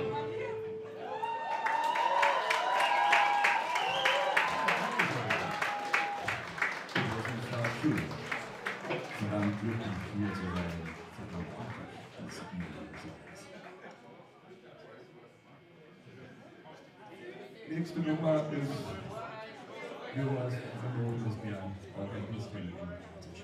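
A rock band plays live with electric guitars and drums.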